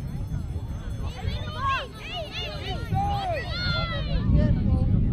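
Young players shout and call out across an open field.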